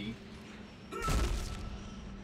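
Steam hisses out in a sudden burst.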